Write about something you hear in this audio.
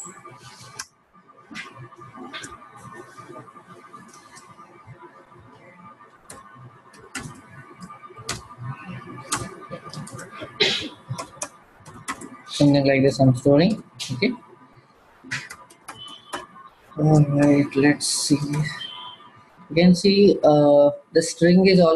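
Keys clack on a computer keyboard.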